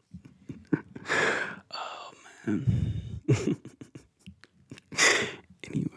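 A young man laughs softly into a microphone.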